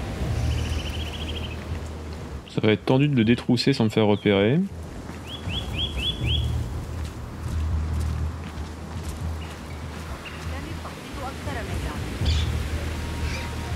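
Footsteps crunch on sandy ground.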